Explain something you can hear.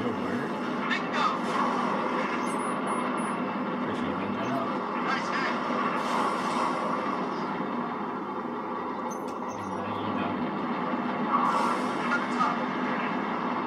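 Laser guns fire in short bursts through a loudspeaker.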